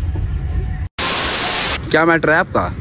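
Television static hisses loudly.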